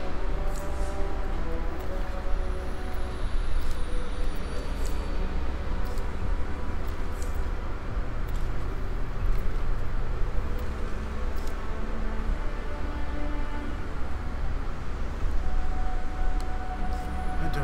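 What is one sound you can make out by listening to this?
Short soft clicks sound as menu items are selected.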